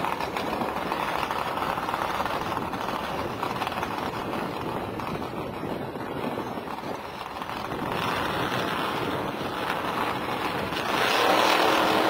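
A race car engine idles with a rough, throbbing rumble.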